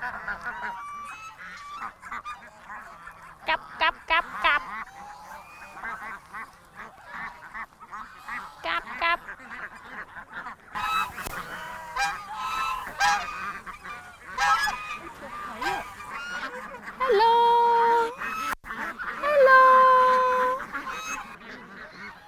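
A large flock of geese honks and cackles loudly outdoors.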